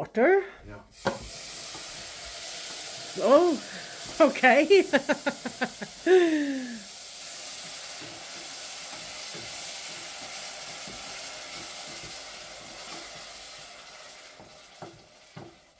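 Food sizzles loudly in a hot pan.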